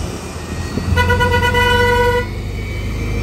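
A bus horn sounds a long steady blast.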